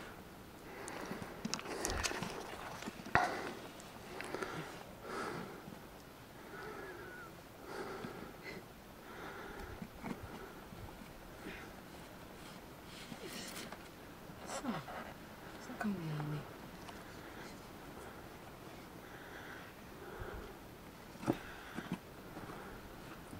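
Boots scrape and shuffle on rock as someone climbs.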